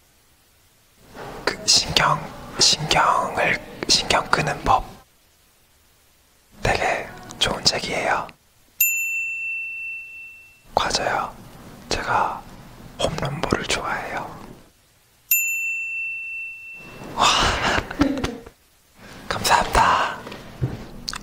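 A young man speaks playfully and close by.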